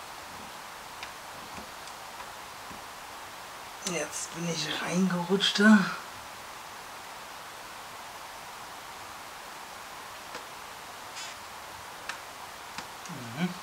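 Plastic parts click and tap softly as they are handled.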